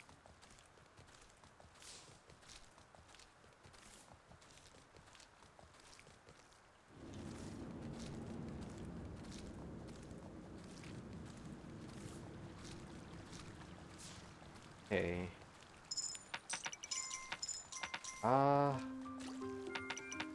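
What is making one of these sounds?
Hooves thud steadily as a mount runs.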